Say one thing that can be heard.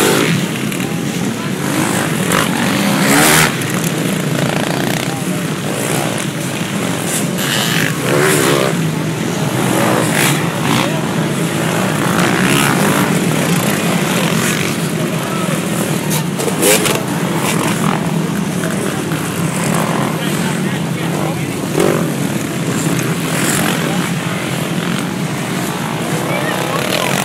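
Many dirt bike engines roar and whine loudly as riders race past close by.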